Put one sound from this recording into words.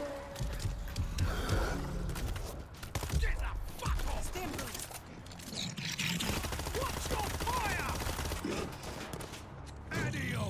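A gun fires several shots.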